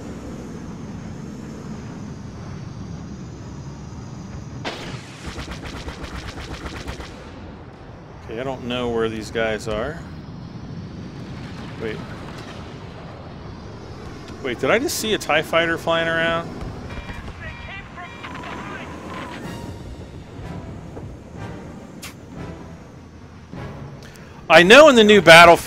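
A starfighter engine hums steadily.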